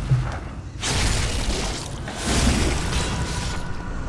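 Weapon blows strike and slash.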